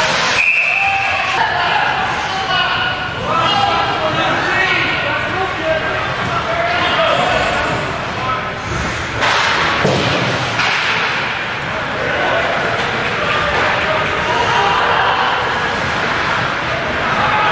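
A crowd of spectators chatters and cheers in a large echoing rink.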